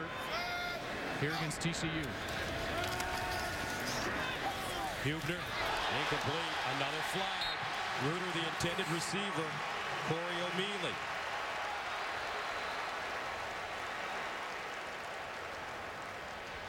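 A large crowd cheers and roars in an open stadium.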